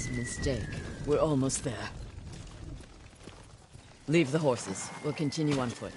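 Horses' hooves thud along a snowy path.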